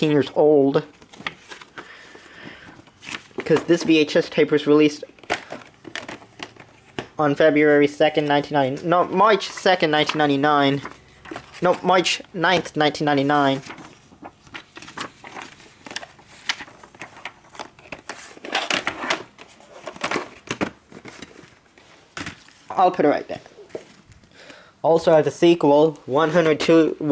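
Plastic tape cases clack and rattle as hands handle them.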